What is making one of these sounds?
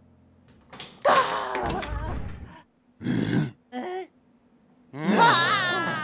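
A cartoon creature laughs loudly.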